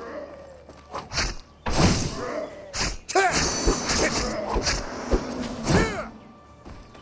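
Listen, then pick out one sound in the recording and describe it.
Blades clash and strike in a fight.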